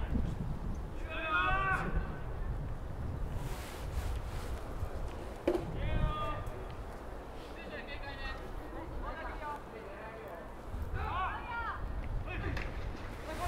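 A young man shouts calls across an open field.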